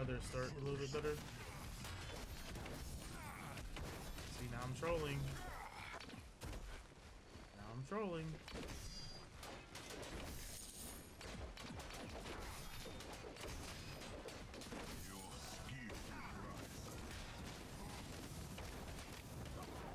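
Magic blasts burst with loud whooshes.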